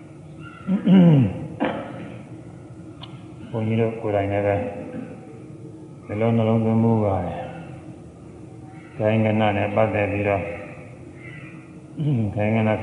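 An elderly man chants slowly through a microphone.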